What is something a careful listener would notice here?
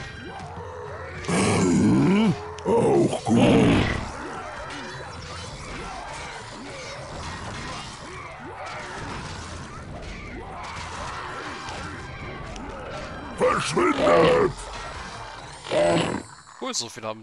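Swords clash in a noisy battle.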